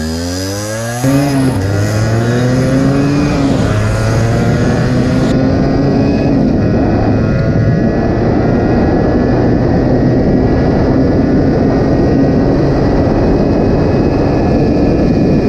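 A motorcycle engine drones at speed.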